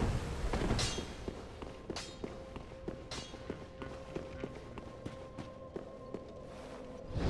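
Armoured footsteps clank steadily on a hard floor.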